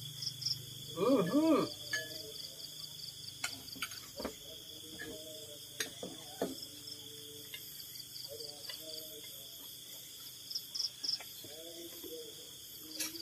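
A middle-aged man talks close by.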